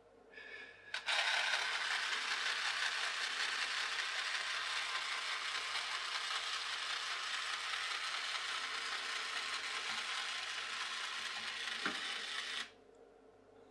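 A wind-up toy boat's clockwork motor whirs.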